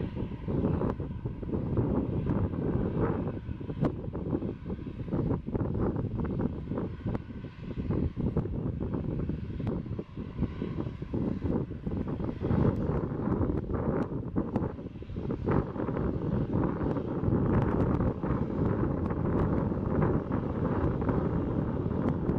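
A Boeing 737-800's twin turbofan engines roar as they spool up for takeoff.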